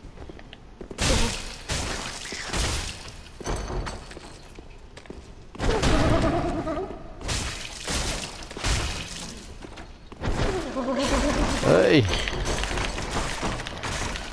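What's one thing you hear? Heavy blows and metal clashes ring out in a fight.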